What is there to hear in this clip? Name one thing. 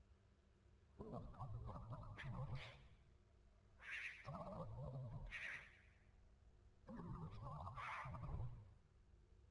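A young man speaks calmly into a headset microphone, close by.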